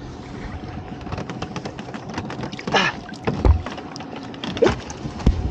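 A wire trap clatters and knocks against a boat's side.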